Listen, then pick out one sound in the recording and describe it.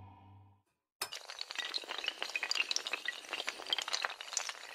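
Dominoes clatter rapidly as they topple one after another.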